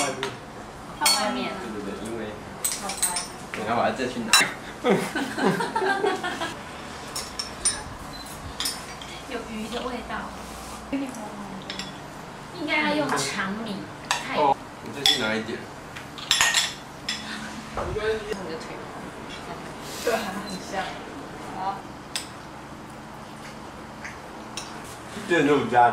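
Spoons clink against ceramic bowls.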